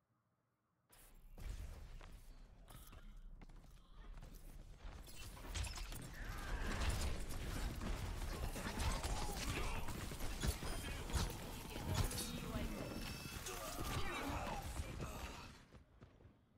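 Gunfire and energy blasts crackle and boom in a fast fight.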